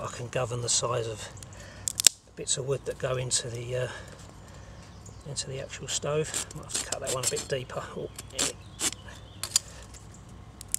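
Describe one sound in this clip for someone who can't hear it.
A knife scrapes and shaves a wooden stick.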